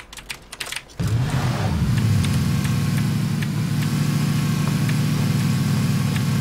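A car engine hums steadily as a vehicle drives.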